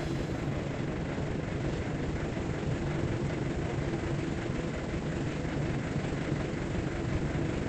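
A steamship's engine rumbles steadily.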